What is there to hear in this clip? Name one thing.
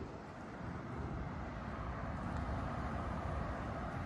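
A car drives past along a street.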